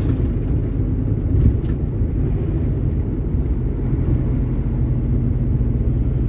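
An oncoming truck rumbles past.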